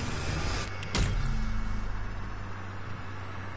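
A loud whooshing burst sounds from a game.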